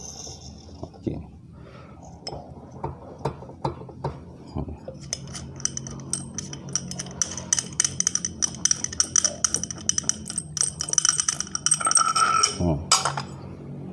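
Metal engine parts click and tick as a wheel is turned by hand.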